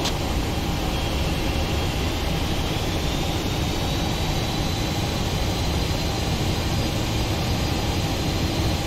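A high jet engine whine rises slightly in pitch.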